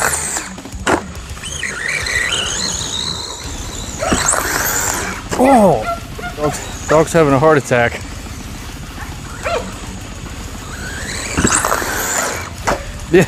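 A toy car's electric motor whines, rising and falling in pitch as it speeds over grass.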